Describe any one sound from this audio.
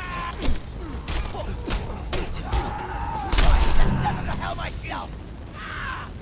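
Punches and blows land with heavy thuds.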